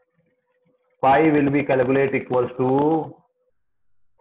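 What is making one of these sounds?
A man speaks calmly through a microphone, as on an online call.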